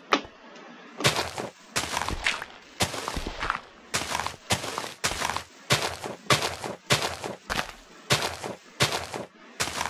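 Game dirt blocks crunch as they are dug, over and over.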